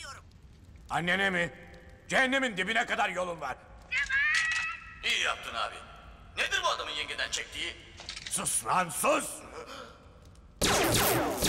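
A man speaks with animation through a small loudspeaker.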